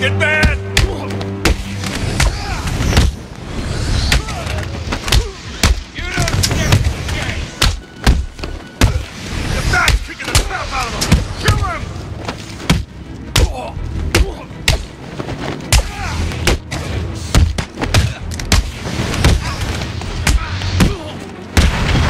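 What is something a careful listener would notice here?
Men grunt and shout as they are struck.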